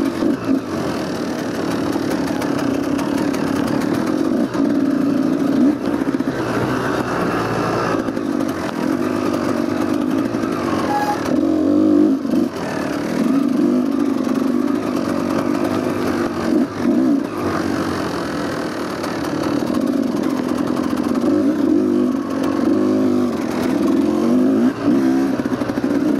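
A dirt bike engine buzzes and revs steadily up close.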